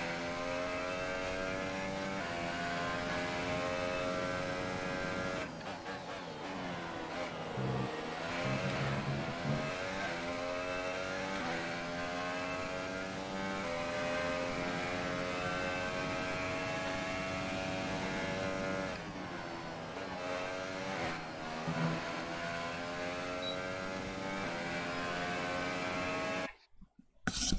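A racing car engine roars at high revs, dropping and rising in pitch with gear changes.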